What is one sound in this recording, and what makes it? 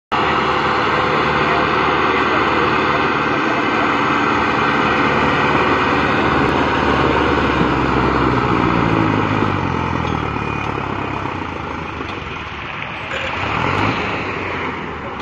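A tractor engine chugs loudly nearby.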